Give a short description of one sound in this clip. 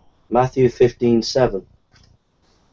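A man speaks briefly and clearly, close to a microphone.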